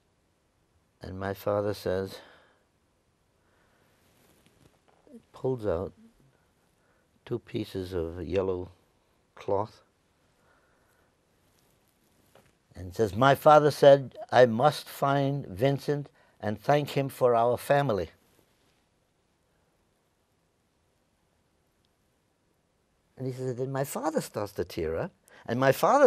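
An elderly man speaks with animation into a close microphone, in bursts with pauses.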